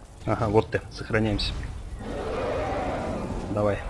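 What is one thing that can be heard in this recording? A dragon roars overhead.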